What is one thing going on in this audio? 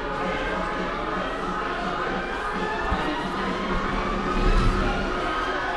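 Many people chatter in a large echoing hall.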